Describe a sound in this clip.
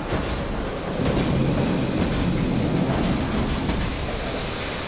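Steam hisses loudly from a leaking pipe.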